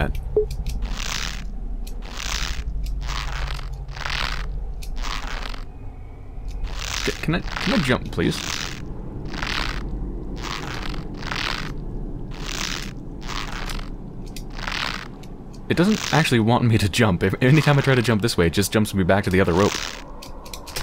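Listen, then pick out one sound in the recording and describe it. Hands pull steadily on a creaking rope in slow, even strokes.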